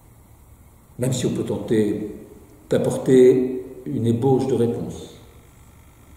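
An older man speaks calmly and close by.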